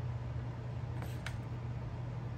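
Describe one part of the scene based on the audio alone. Wooden chopsticks click against each other.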